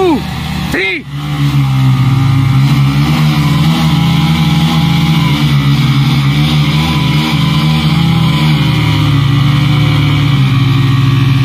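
Motorcycle engines run and rev loudly.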